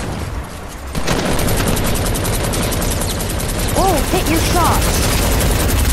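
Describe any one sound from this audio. Rapid gunfire crackles close by.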